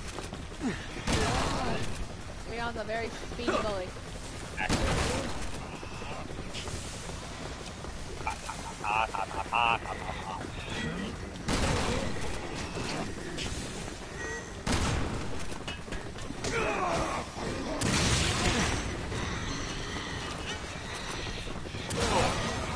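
Gunshots fire in bursts in a video game.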